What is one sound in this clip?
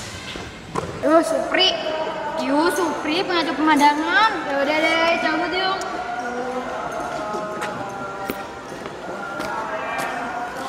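Young women talk calmly close by.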